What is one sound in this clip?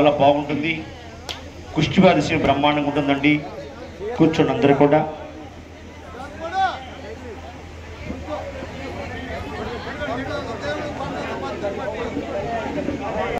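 A crowd murmurs and chatters throughout.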